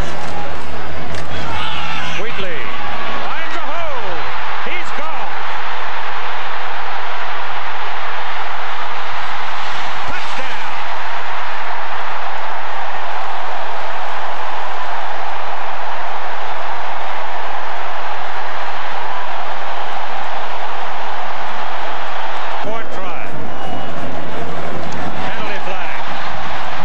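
A huge stadium crowd roars and cheers loudly.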